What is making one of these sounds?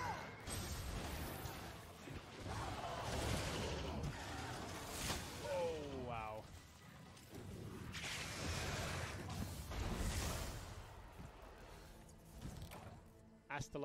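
Loud crashing battle noise rumbles.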